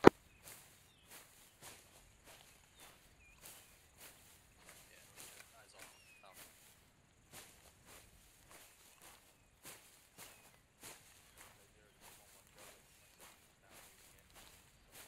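Footsteps rustle steadily through dry grass.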